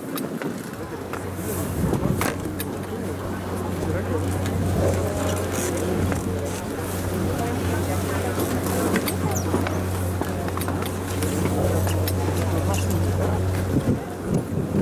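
A ski lift's machinery hums steadily.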